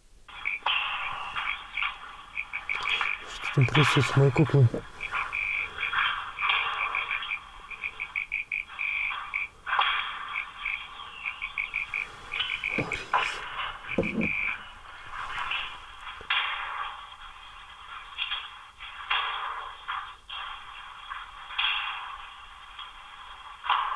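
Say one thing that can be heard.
A man talks calmly close by, sounding thin and tinny.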